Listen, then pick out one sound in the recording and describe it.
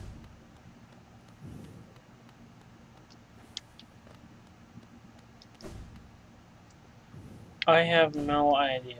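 Light footsteps tap softly on stone.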